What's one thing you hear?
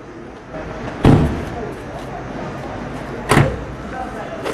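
A car door thuds shut nearby.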